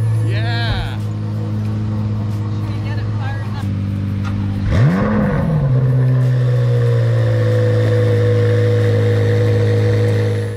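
A sports car engine idles with a deep, steady rumble.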